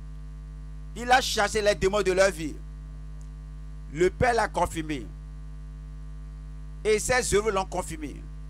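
An elderly man preaches forcefully into a microphone, in short bursts with pauses.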